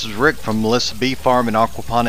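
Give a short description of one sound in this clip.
Water trickles and splashes over rocks.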